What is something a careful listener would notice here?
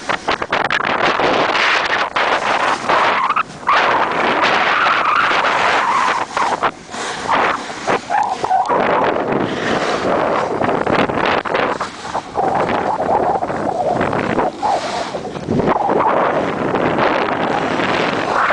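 Wind rushes past the microphone outdoors.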